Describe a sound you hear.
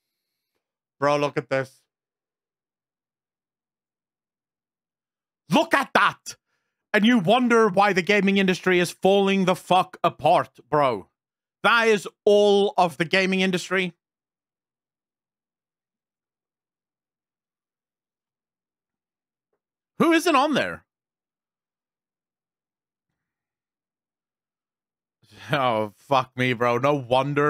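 A man talks casually into a close microphone, in bursts with long pauses.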